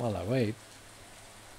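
A young man makes a brief vocal sound close to a microphone.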